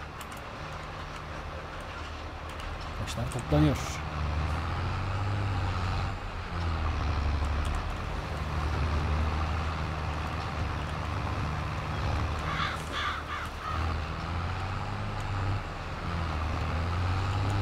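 A tractor engine hums low and steady.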